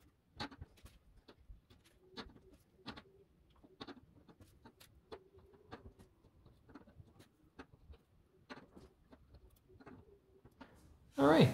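Wires click softly as they are pushed into a plastic board.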